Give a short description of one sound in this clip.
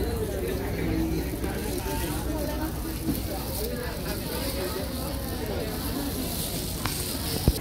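Metal tongs clink against a pan.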